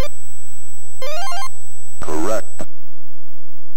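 A short, bright electronic jingle plays.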